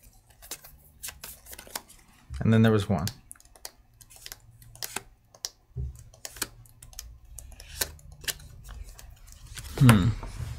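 Game cards tap and slide on a table.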